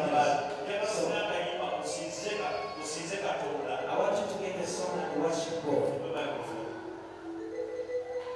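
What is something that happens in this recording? A man preaches with animation into a microphone over loudspeakers in an echoing hall.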